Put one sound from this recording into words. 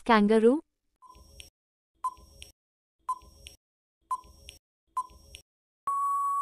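A timer ticks once a second.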